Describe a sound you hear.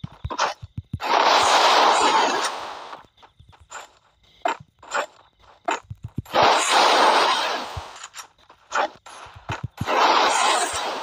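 Walls burst up with a loud rushing hiss.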